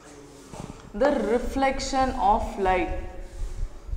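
A woman speaks clearly into a nearby microphone.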